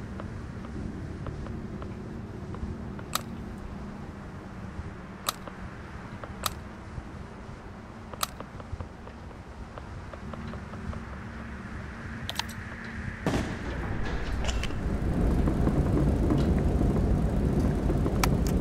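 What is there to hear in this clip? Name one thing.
A small engine hums steadily.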